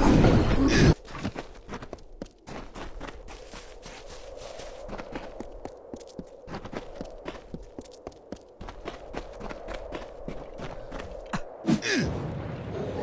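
Footsteps patter as a game character runs.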